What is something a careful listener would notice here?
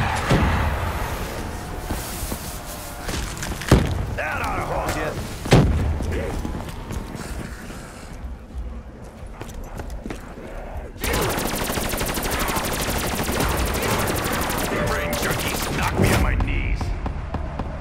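Guns fire in loud, sharp bursts.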